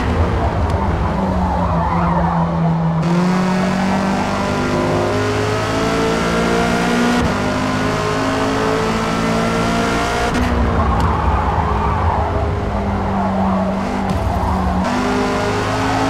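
Tyres screech through the corners.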